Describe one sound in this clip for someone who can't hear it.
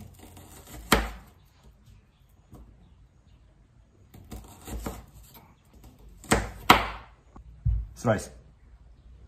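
A knife slices through an onion with sharp crunches.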